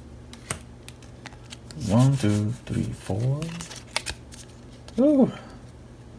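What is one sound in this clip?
Playing cards click and rustle softly as they are shuffled by hand.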